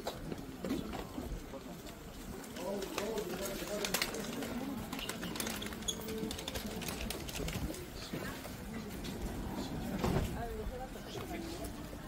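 Voices of a crowd murmur around.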